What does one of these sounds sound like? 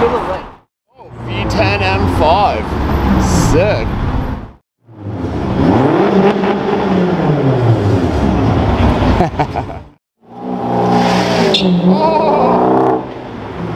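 A car engine revs loudly, its roar rising and falling in pitch.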